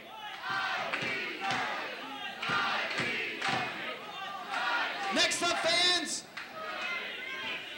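A crowd cheers in a large echoing arena.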